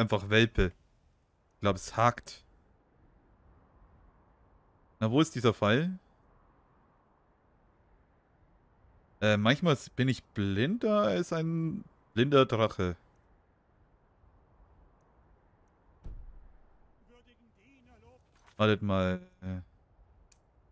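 A man talks casually into a close microphone, in short bursts.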